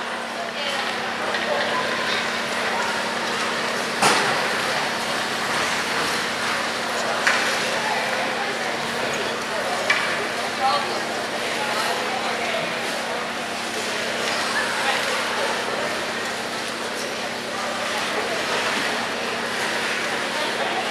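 Youth hockey players chatter and call out in an echoing ice arena.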